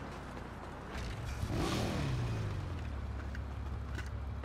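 A motorbike engine starts up and revs.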